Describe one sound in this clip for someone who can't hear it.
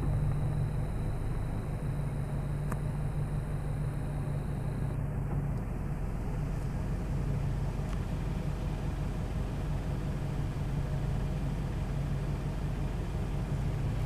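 A car engine idles with a low, steady hum nearby.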